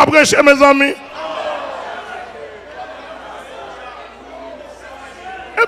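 A congregation murmurs and calls out in a large echoing hall.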